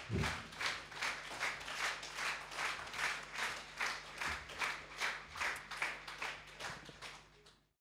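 An audience claps in a steady, quick rhythm that fades out at the end.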